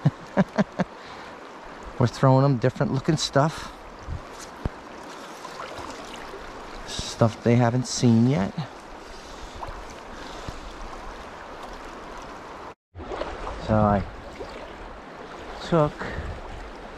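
A shallow river rushes steadily over stones.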